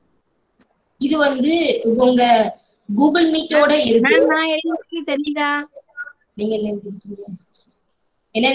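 A woman speaks with animation, heard through an online call.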